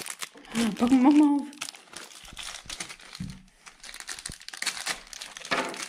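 Plastic bags crinkle and rustle as they are handled.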